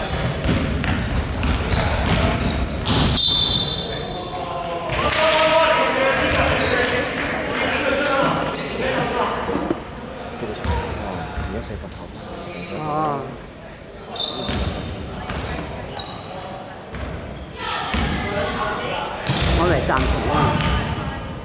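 Young men shout and call out to each other across the hall.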